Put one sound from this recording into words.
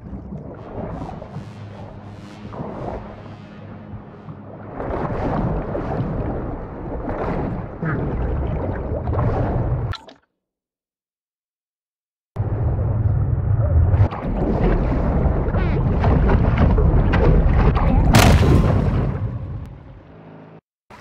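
Muffled underwater sounds rumble and bubble.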